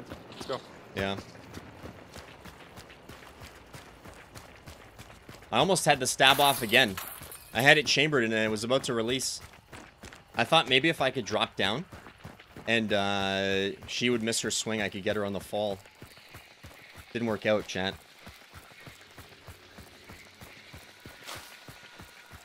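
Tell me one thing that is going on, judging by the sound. Footsteps tread steadily over dirt and gravel.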